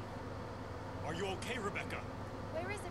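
A young woman speaks softly with surprise.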